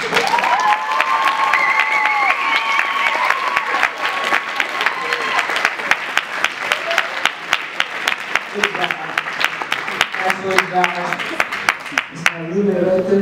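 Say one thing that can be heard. A crowd claps along in a quick steady rhythm in a large room.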